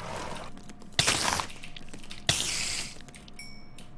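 A sword strikes a giant spider with sharp hits.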